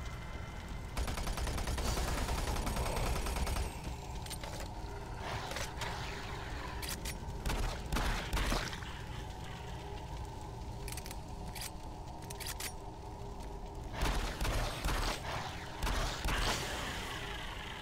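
Rapid gunfire blasts loudly in bursts.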